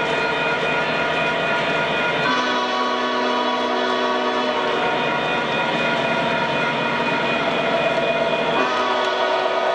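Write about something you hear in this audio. A model train rolls along the track with a steady humming engine.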